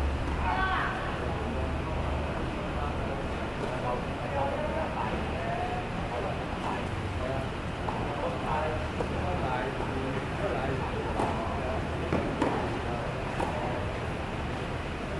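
Tennis balls are struck with rackets.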